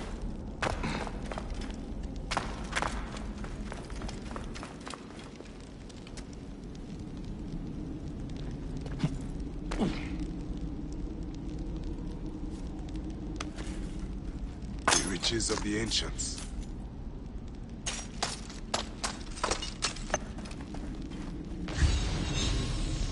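A torch flame crackles and roars softly.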